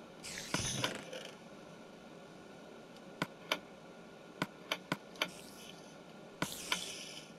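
Game interface clicks sound as items are moved in a menu.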